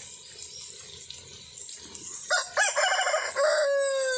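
Dry seeds rattle as they are scraped into a clay pot.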